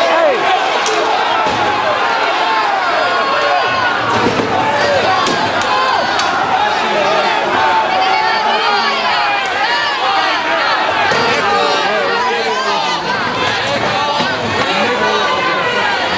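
A crowd of men and women shouts and chants loudly outdoors.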